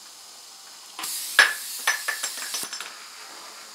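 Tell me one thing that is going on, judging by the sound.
A small dental drill whirs briefly.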